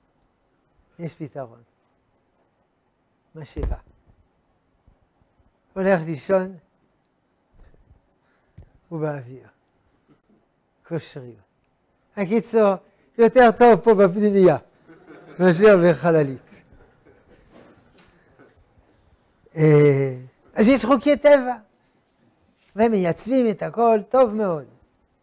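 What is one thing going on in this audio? An elderly man speaks with animation into a clip-on microphone, in short bursts with pauses.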